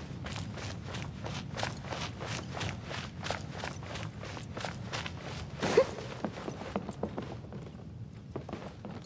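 Quick footsteps run over hard ground.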